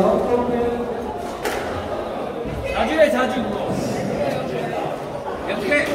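A squash ball smacks against the walls of an echoing court.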